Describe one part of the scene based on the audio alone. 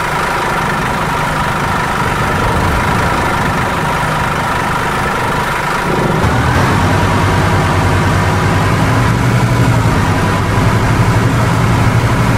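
A bus engine hums steadily and grows louder as the bus speeds up.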